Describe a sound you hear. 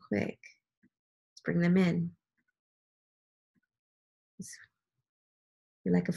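A woman speaks calmly and closely into a microphone, in short bursts with pauses.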